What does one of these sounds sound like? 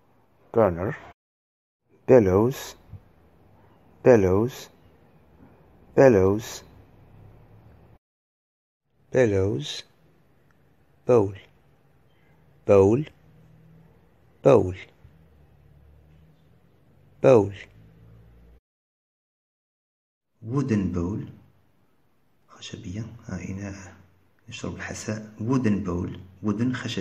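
A man speaks clearly into a close microphone, naming words one at a time.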